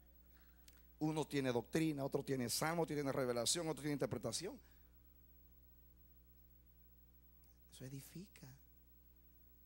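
A man speaks with animation into a microphone over a loudspeaker.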